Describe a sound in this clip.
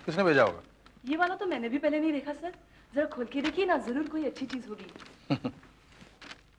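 A woman speaks brightly nearby.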